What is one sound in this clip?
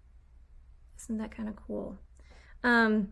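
A young woman speaks calmly, heard through an online call.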